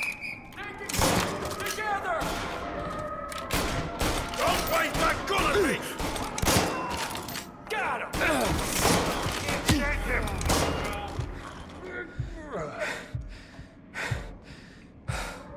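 Gunshots ring out in rapid bursts, echoing loudly.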